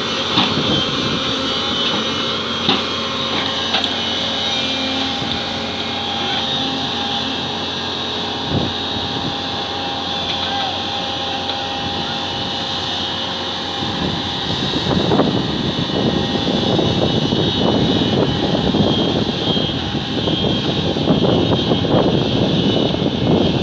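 A diesel crawler excavator engine runs under load.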